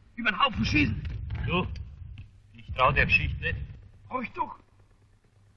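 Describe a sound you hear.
A man speaks quietly and tensely.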